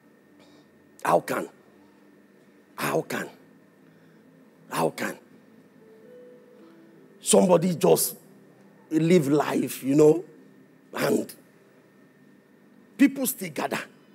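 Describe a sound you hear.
A man speaks with animation into a microphone in short bursts, heard over loudspeakers in a large room.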